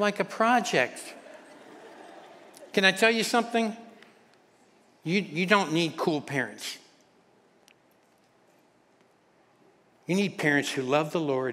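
A middle-aged man speaks calmly through a microphone in a reverberant hall, pausing between phrases.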